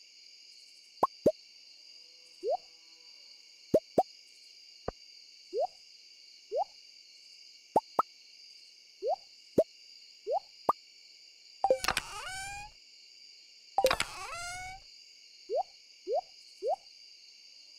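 Game menu clicks and soft pops sound as items are moved.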